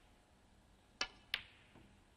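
A cue tip strikes a snooker cue ball.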